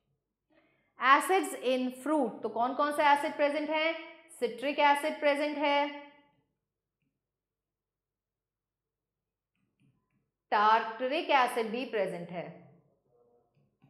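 A woman speaks calmly and clearly into a close microphone, explaining.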